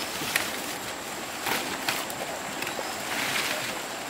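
A machete chops through leafy stems.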